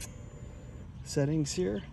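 A finger clicks a button on a scooter's handlebar.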